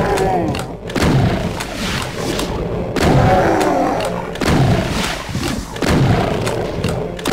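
A shotgun fires with loud booming blasts again and again.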